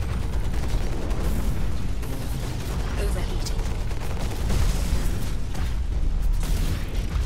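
A large machine's engine hums and stomps.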